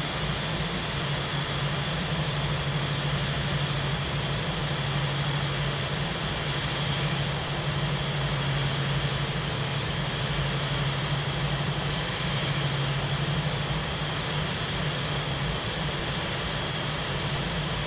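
Jet engines hum and whine steadily as an airliner taxis slowly closer.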